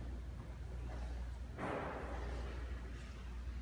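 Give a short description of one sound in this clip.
Footsteps tap on a hard floor in a large, echoing room.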